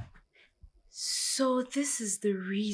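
A woman speaks loudly and upset close by.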